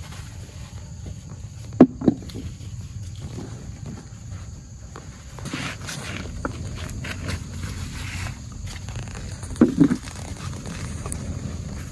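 Leaves rustle as someone picks vegetables from the vines close by.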